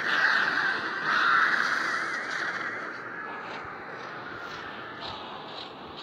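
A cheerful video game jingle plays as a match ends.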